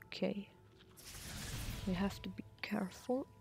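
A soft magical whoosh swells and fades as a glowing burst of light flares.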